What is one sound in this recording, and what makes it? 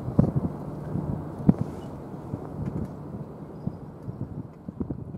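A large ship's engine rumbles low and steady in the distance.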